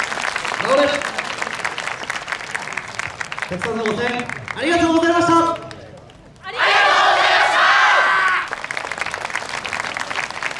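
Wooden hand clappers clack in quick rhythm.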